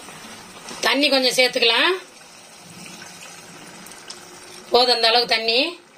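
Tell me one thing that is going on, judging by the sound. Water pours and splashes into a pot of sauce.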